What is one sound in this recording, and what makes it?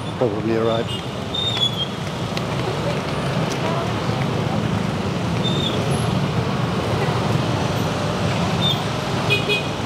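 Motor scooters rumble in slow traffic.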